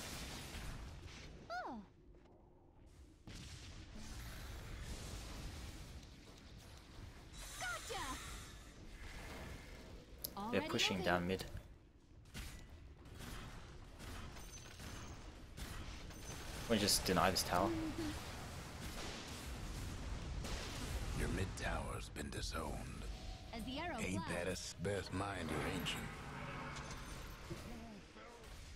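Spell effects whoosh and crackle in a fight.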